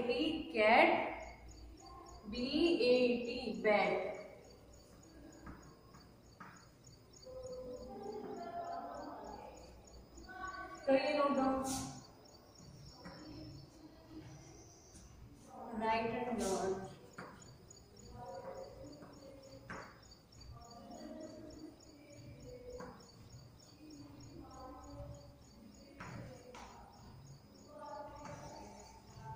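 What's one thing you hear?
A woman speaks clearly and calmly, like a teacher explaining.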